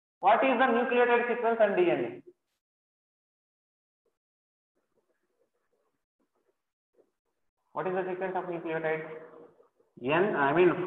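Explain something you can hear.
A man speaks calmly into a close microphone, in bursts with long pauses.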